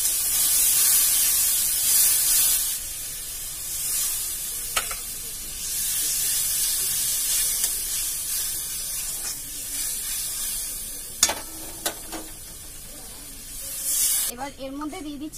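Oil sizzles and spatters in a hot pan.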